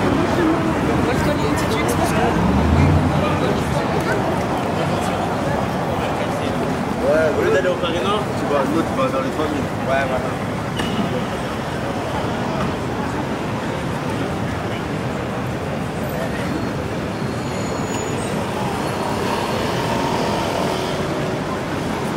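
Traffic hums steadily in the distance.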